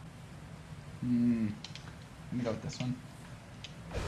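A young man speaks briefly and casually, close to a microphone.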